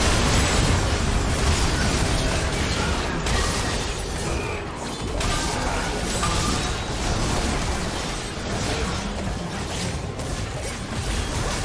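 Spell effects and weapon hits crackle and boom rapidly in a game battle.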